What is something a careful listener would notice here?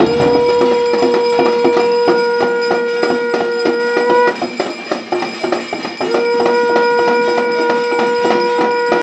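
A hand bell rings.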